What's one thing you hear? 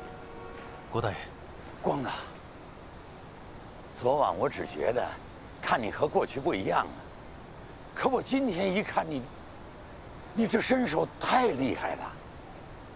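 An elderly man talks with animation, close by.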